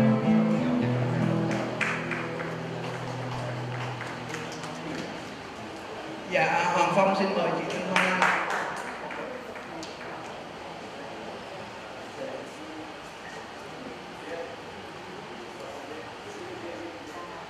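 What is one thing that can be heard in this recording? An acoustic guitar plays softly.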